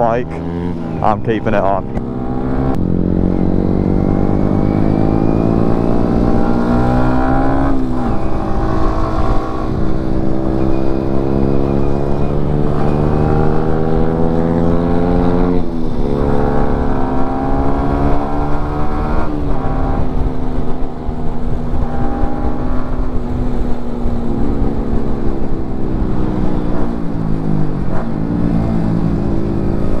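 A motorcycle engine roars close by, its pitch rising and falling as it speeds up and shifts gears.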